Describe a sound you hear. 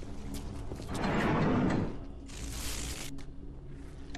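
Electricity crackles and sizzles in short bursts.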